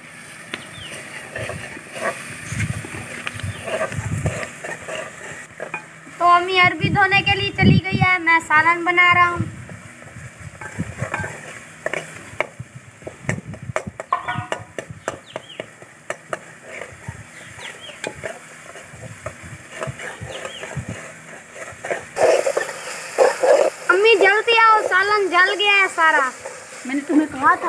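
A metal ladle scrapes and clinks against a metal pot.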